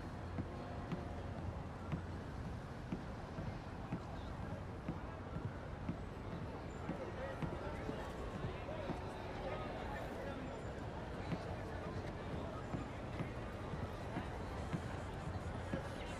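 Footsteps thud on wooden boards at a steady walking pace.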